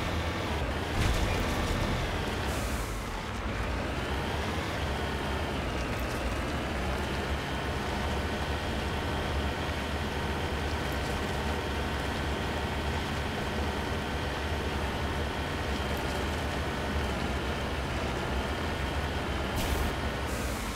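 A vehicle lands hard with a thud.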